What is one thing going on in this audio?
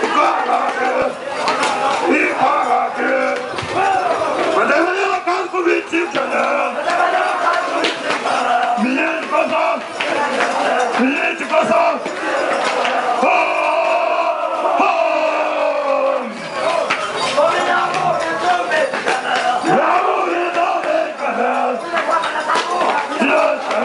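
A crowd chatters and calls out outdoors.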